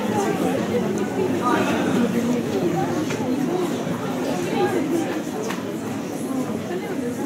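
Instrumental backing music plays through loudspeakers.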